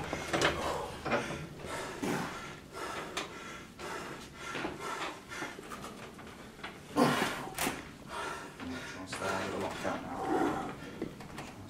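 A man strains and grunts.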